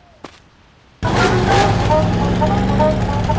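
A vehicle engine runs loudly.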